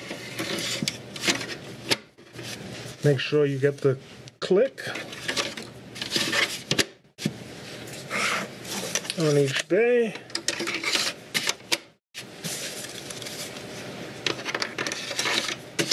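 A plastic drive tray slides into a slot and clicks.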